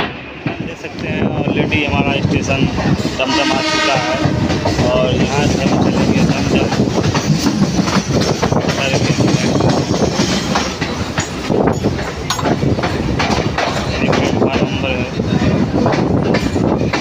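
A train rumbles and clatters along the rails.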